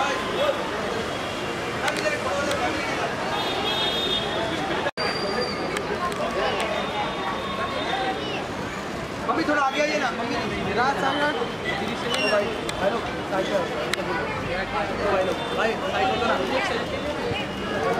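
A crowd of men talk and call out nearby, outdoors.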